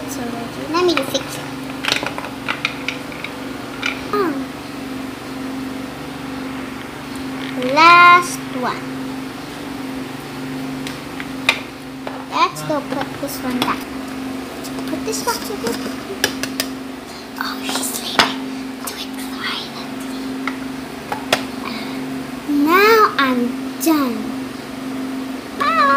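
Small plastic toys knock and clack against a hard surface.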